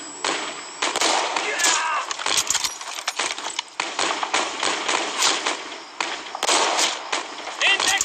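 Rifle shots crack repeatedly.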